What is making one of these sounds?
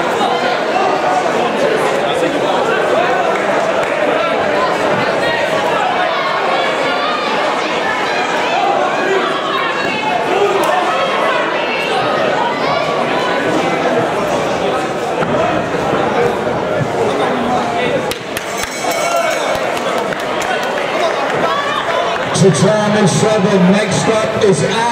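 A crowd chatters and calls out loudly in a large echoing hall.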